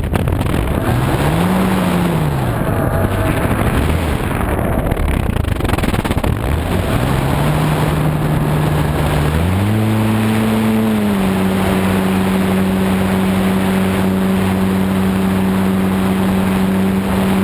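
An electric motor whines, rising and falling in pitch, then holds a steady hum.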